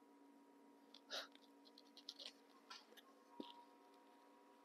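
Small plastic objects tap and click as they are handled.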